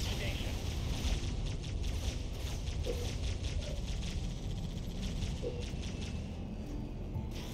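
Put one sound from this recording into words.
Short interface clicks tick several times.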